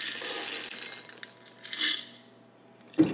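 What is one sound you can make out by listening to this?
Coffee beans pour and rattle into a glass bowl.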